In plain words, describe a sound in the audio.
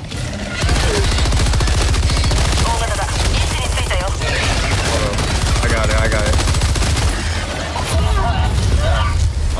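A rifle fires in rapid, continuous bursts.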